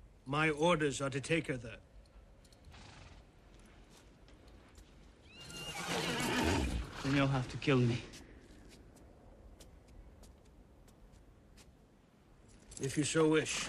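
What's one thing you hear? An older man speaks in a low, serious voice.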